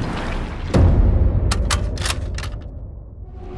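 A rifle fires a single loud shot that booms and echoes away.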